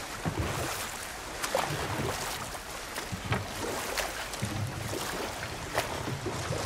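Water laps gently against a wooden boat.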